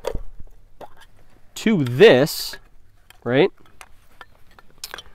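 Small wooden sticks click and rattle as they are handled.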